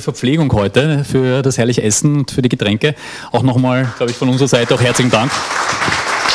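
A man speaks through a microphone to an audience.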